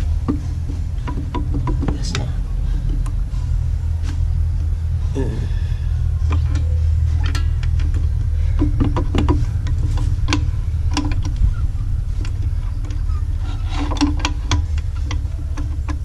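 Metal parts click and clink as hands work on a motorbike engine cover.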